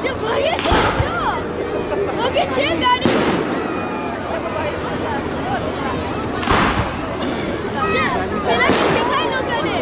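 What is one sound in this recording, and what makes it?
Fireworks burst with loud booms.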